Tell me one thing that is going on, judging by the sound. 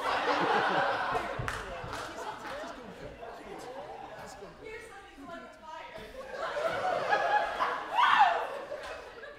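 Young performers speak and call out loudly in a large echoing hall.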